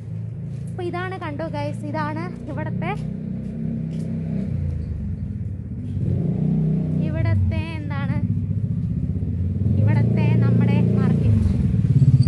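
A young woman speaks softly close to the microphone.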